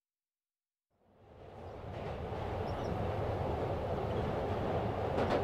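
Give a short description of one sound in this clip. A subway train rumbles and rattles along the tracks, fading in from silence.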